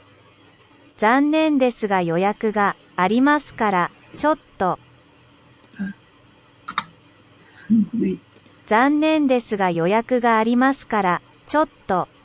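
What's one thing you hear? A computer voice reads out a short phrase through a small speaker.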